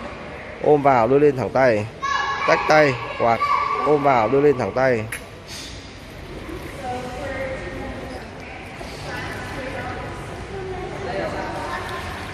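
Water splashes gently as a swimmer kicks and glides.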